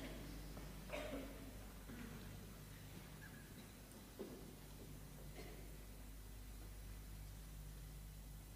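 A piano plays soft, sparse notes in a large echoing hall.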